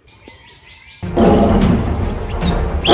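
A tiger growls and snarls loudly.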